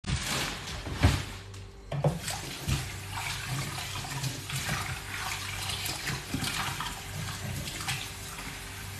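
Water splashes in a metal sink as hands wash a pot.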